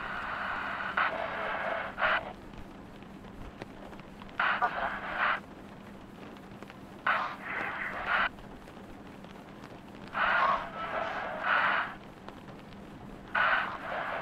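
A radio crackles with static in short bursts.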